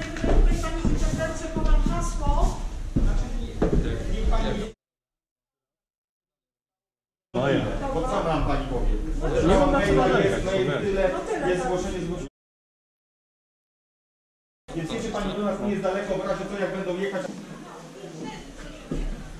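Men talk with each other close by.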